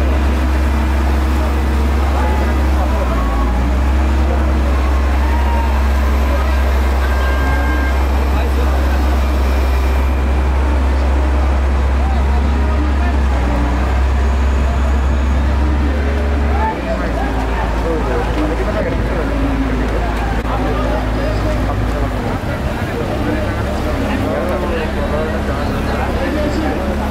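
Men shout and call out over the water.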